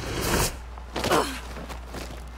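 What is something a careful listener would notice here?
An armoured body crashes heavily onto rocks.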